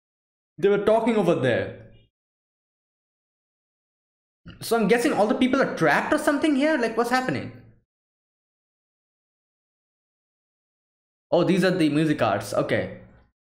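A young man speaks through a headset microphone close by, in short bursts with long pauses.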